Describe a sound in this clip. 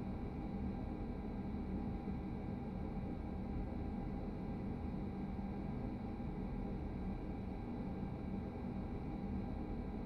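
Train wheels rumble low and steadily on the rails.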